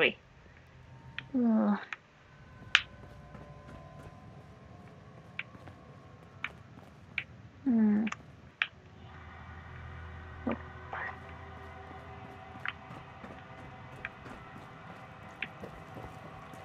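Footsteps tread across a hard floor.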